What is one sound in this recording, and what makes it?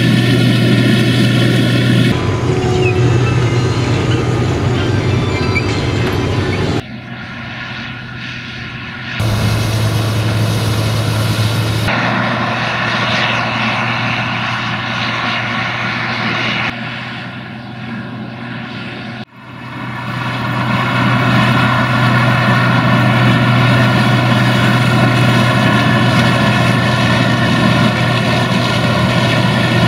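Dry corn stalks crackle and snap as a harvester cuts through them.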